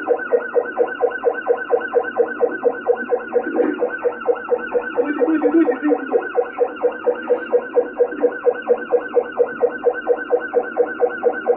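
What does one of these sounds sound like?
A police siren wails in a fast, rapid yelp throughout.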